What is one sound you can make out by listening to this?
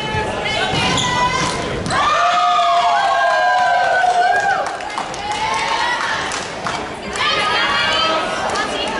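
Young women shout and cheer loudly in a large echoing hall.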